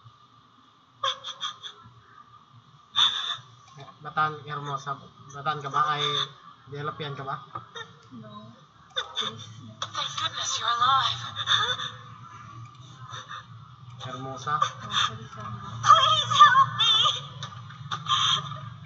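A young man and a young woman talk casually over an online call.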